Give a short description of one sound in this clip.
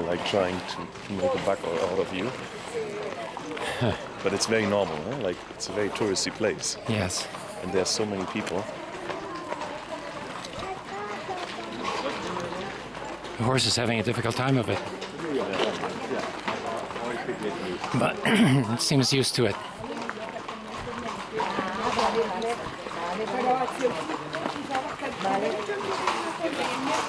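Footsteps crunch on gravel close by.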